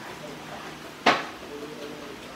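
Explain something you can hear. A lump of clay slaps down sharply onto a hard surface.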